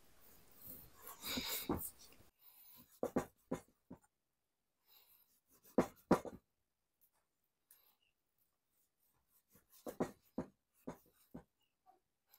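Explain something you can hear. A knife taps on a wooden chopping block.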